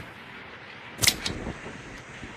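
A cigarette lighter clicks.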